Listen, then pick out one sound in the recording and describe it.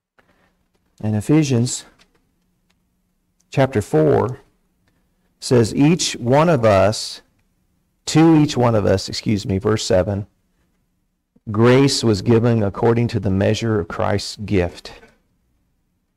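An older man speaks calmly through a microphone, pausing between phrases.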